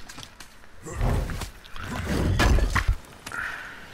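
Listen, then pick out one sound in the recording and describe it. A heavy wooden lid creaks open.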